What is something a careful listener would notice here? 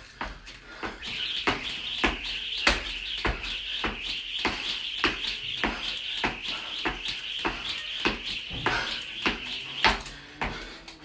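A skipping rope slaps the floor in a fast, steady rhythm.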